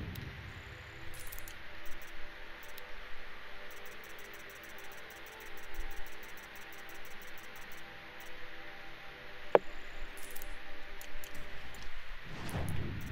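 Soft clicks tick quickly, one after another.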